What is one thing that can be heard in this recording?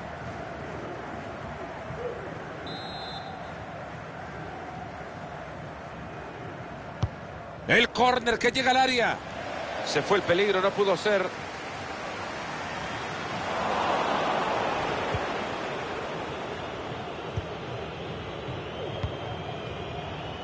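A stadium crowd murmurs steadily and swells into cheering.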